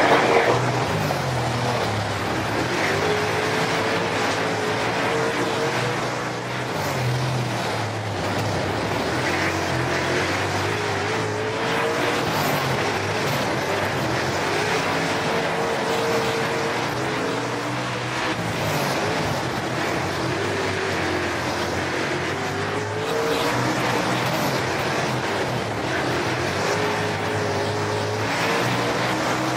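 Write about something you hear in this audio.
Tyres rumble and skid over a loose dirt track.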